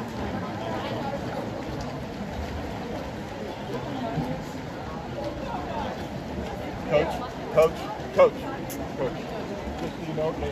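A crowd of spectators shouts and cheers across an outdoor pool.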